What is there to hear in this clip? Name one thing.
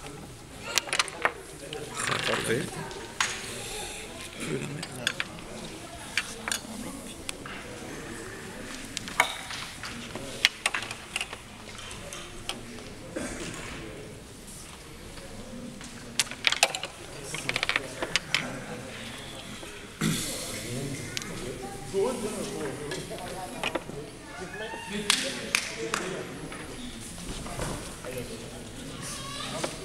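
Small plastic figures click as fingers flick them across a table.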